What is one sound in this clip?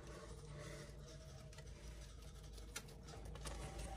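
A hamster scurries through rustling wood shavings.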